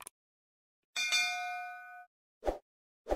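A small bell chimes and rings out.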